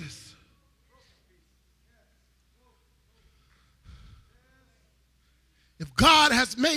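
A man speaks emotionally through a microphone, his voice rising to a loud cry.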